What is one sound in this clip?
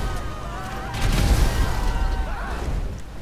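An explosion booms and fire roars.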